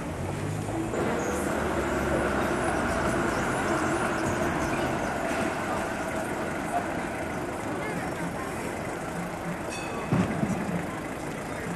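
A tram rumbles past on its rails.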